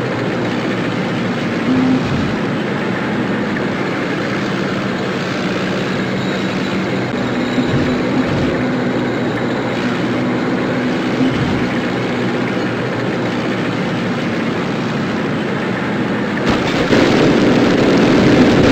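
Tank guns fire with loud booms.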